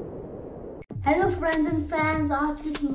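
A teenage boy speaks close by, cheerfully and with animation.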